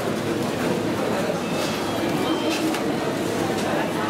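A young woman crinkles a paper bag.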